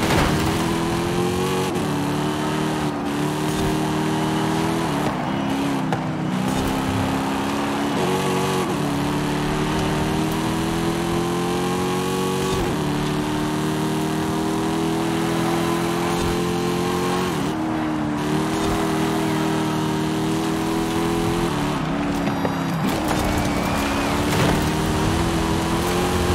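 A car engine roars loudly, rising in pitch and dropping sharply at each gear change.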